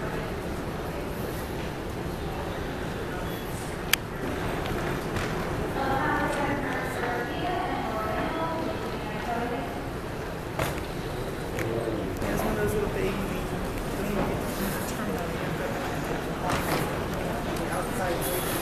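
Wheeled suitcases roll across a hard floor.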